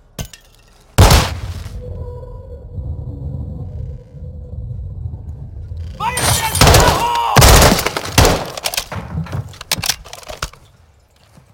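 An assault rifle fires shots indoors.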